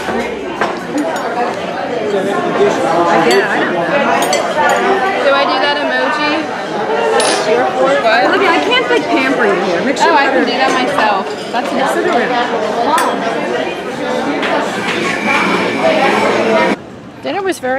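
Many people chatter nearby.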